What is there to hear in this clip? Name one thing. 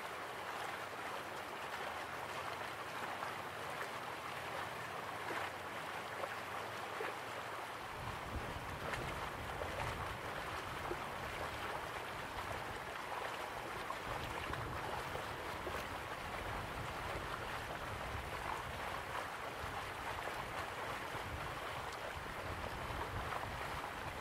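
A small waterfall splashes steadily into a pool.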